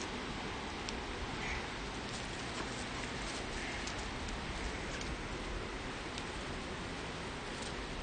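Outdoors, a steady wind rustles tall grass.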